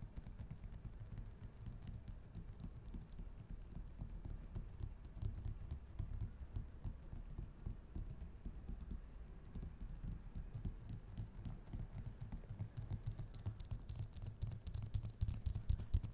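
Fingertips tap and scratch lightly on a hard smooth surface, close up.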